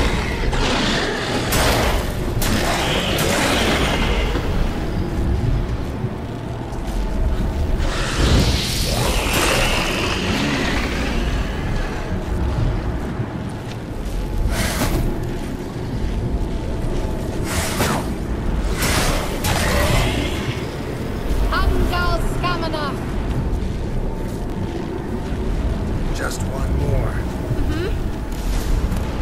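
A deep magical rumble drones throughout.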